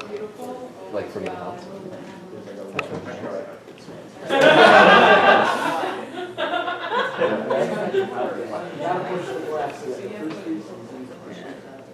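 A woman sings with a loud, wavering voice.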